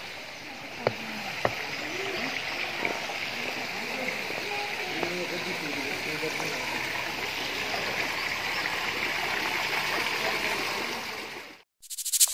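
Water trickles and splashes into a pool.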